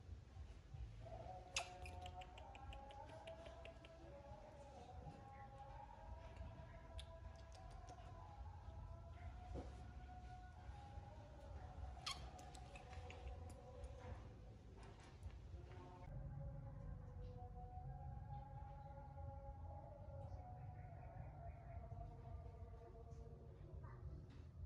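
A baby monkey squeals and whimpers in high, wavering cries.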